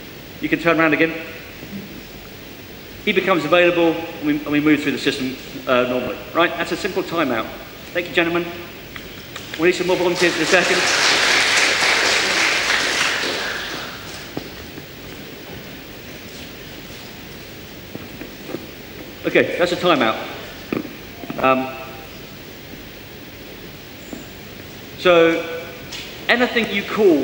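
A man speaks through a microphone into a large echoing hall.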